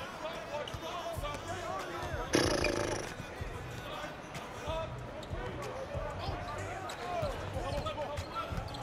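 Sneakers squeak sharply and often on a hardwood court.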